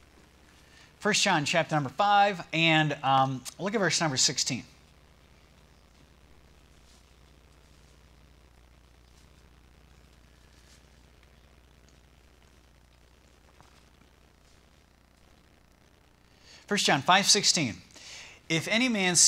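A man speaks slowly and solemnly into a microphone, with long pauses.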